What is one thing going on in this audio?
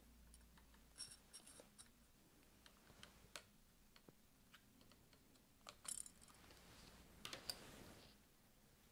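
Small plastic parts click softly as fingers fit them together.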